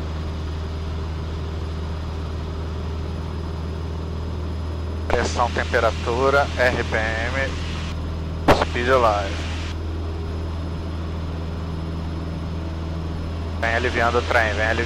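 A single-engine propeller plane's piston engine drones at full power on the takeoff roll.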